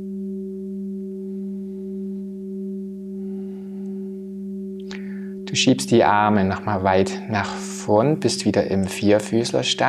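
A singing bowl hums with a steady, ringing tone.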